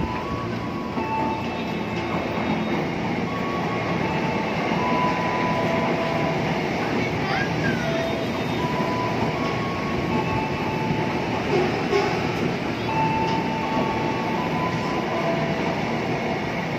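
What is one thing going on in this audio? An electric train rumbles past close by.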